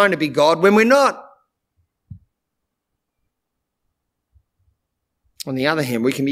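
A middle-aged man speaks calmly and clearly into a close microphone, pausing between phrases.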